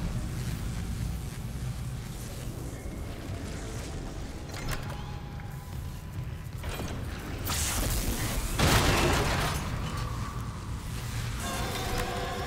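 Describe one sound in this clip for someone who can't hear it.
Electric arcs crackle and buzz loudly.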